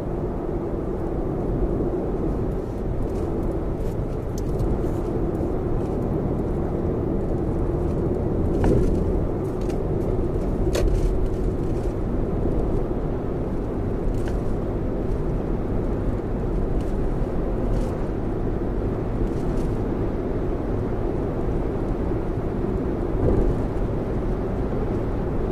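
Tyres roll steadily on a highway, heard from inside a car.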